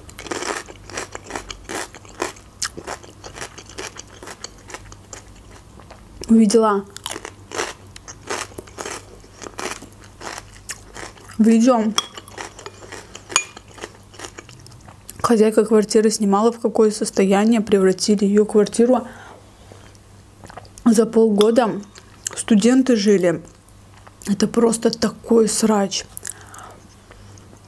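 Crunchy vegetables snap and crunch as a woman chews close up.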